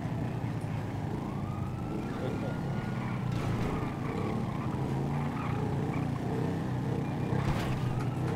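A motorcycle engine hums steadily as it rides along a road.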